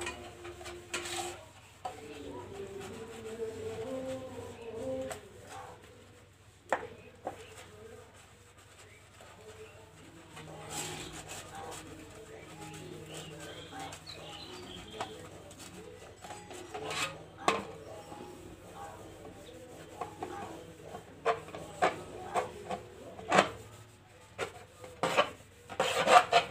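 Metal dishes clink and clatter as they are washed by hand.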